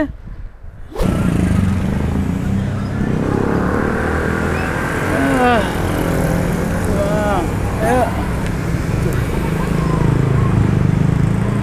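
Motorbike engines hum and rumble in street traffic.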